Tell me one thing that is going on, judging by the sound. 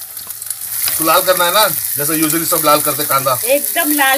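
A wooden spatula scrapes and stirs in a pan.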